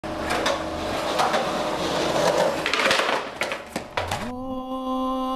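Skateboard wheels roll and rumble on concrete.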